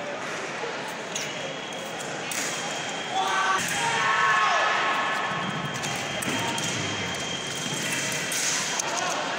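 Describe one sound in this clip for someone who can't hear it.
Voices murmur and echo around a large hall.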